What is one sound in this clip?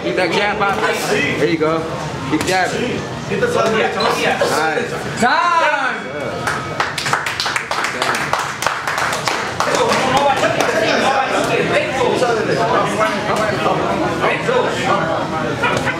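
A crowd of men talks and calls out in an echoing hall.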